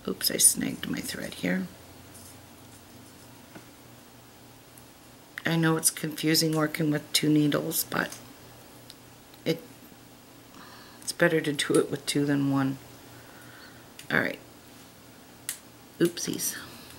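Small beads click softly against each other.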